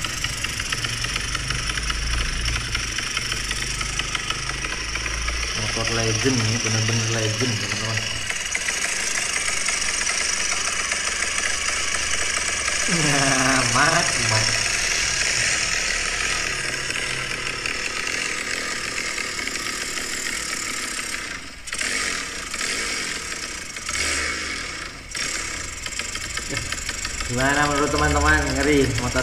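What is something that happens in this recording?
A racing motorcycle engine revs loudly.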